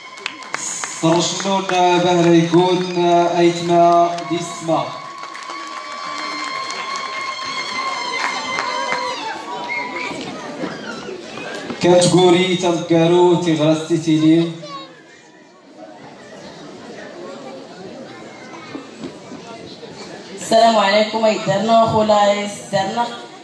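A group of women sing together in chorus through loudspeakers, echoing in a large hall.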